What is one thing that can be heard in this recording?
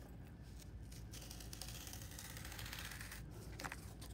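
A marker scratches softly across cardboard.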